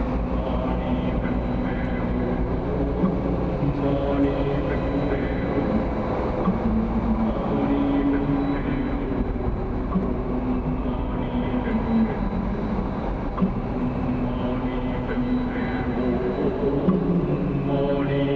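Tyres rumble steadily on a paved road.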